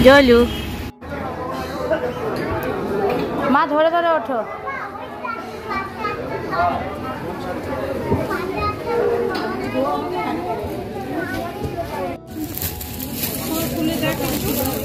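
People chatter in a busy indoor space.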